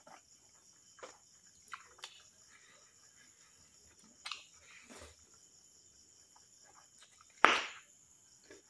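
A man chews and crunches food close to a microphone.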